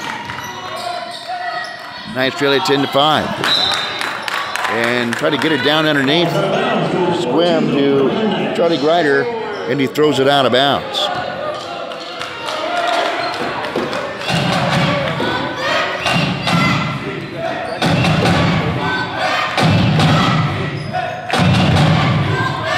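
A crowd in a large echoing gym cheers and shouts.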